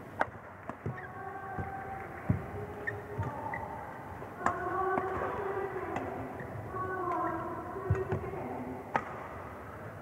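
Sports shoes squeak on a court floor.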